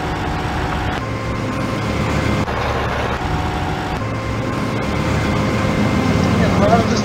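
A combine harvester engine rumbles low and steadily.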